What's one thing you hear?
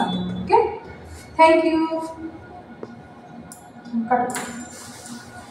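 A young woman speaks clearly and slowly, close by.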